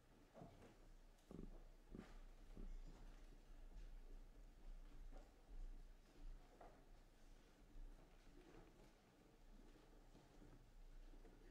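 Footsteps shuffle softly across the floor.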